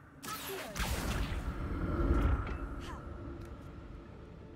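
A heavy stone platform rumbles and whooshes as it moves through the air.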